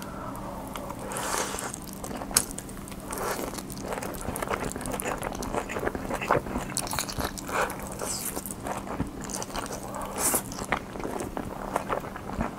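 A young man slurps noodles loudly, close to a microphone.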